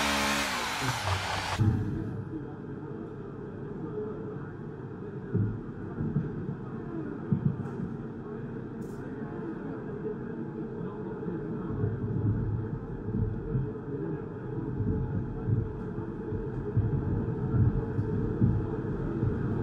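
A racing car engine idles with a low, steady rumble.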